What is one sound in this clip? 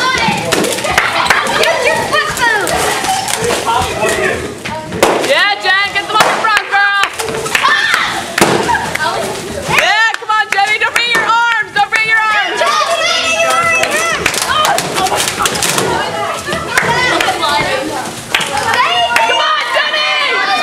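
A crowd of young people shouts and screams with excitement in an echoing room.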